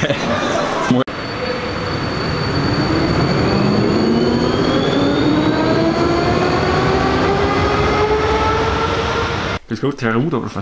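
A tram pulls away with a rising electric whine.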